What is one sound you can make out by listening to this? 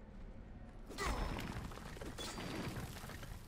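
A stone wall breaks apart and crumbles with a loud crash.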